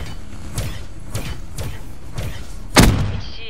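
A gun fires several sharp shots.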